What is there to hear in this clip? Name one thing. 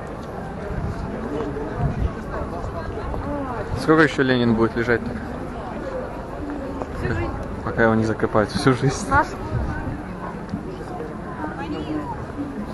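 A crowd murmurs outdoors in an open square.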